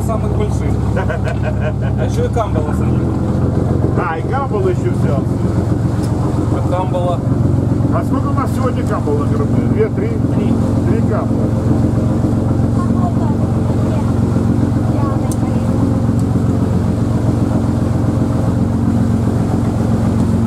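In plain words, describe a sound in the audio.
A young boy speaks close by.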